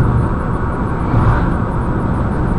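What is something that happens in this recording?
An oncoming car rushes past.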